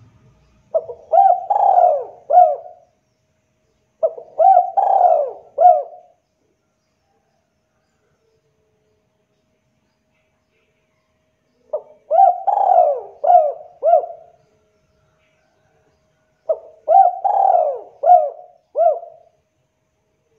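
A spotted dove coos in short repeated phrases.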